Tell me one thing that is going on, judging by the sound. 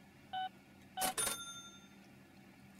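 A card terminal chimes to confirm a payment.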